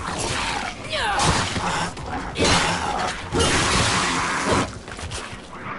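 Sword slashes and heavy blows land in a video game fight.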